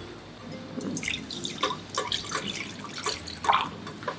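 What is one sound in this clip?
Water pours into a pan.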